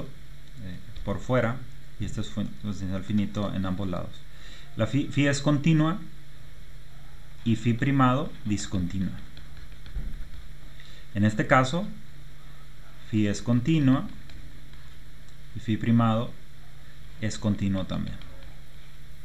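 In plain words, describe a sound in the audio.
A man speaks calmly into a close microphone, explaining in short phrases with pauses.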